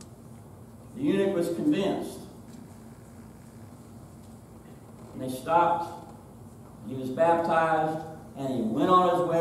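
A middle-aged man speaks with animation in a slightly echoing room.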